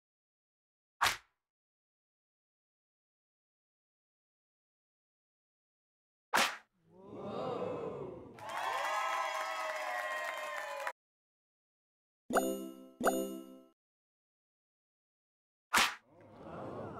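A sharp slap smacks loudly, several times.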